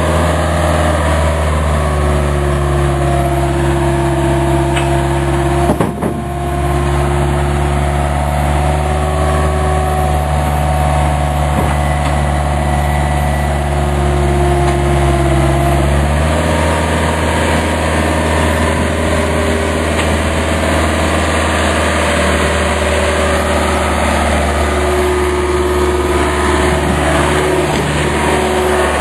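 An excavator's hydraulics whine as the arm swings.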